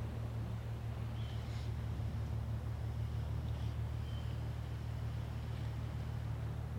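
Water laps gently against rocks nearby.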